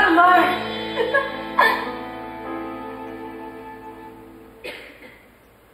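A young woman sings in a large hall.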